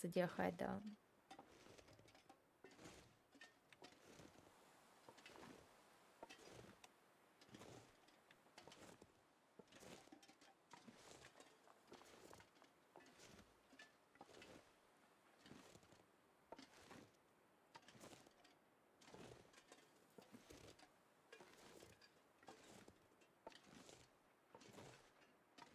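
Footsteps crunch through deep snow at a steady walking pace.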